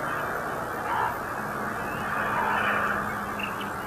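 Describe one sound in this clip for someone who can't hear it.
A crow caws from a tree.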